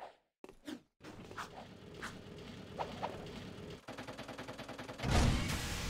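Quick light footsteps patter on a hard floor.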